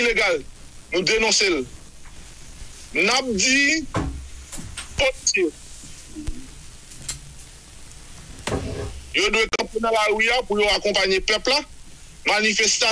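A man speaks with animation through a microphone, in short bursts with pauses.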